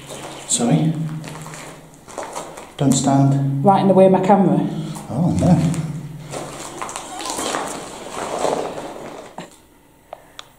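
A man talks quietly close by, in an echoing room.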